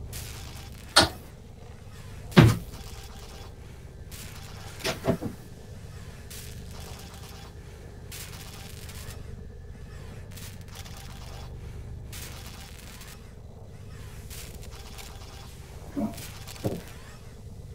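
Sharp electronic zaps sound now and then.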